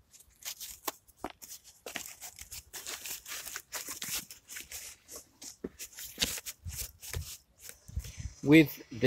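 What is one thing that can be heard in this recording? Cardboard rustles and tears under gloved hands.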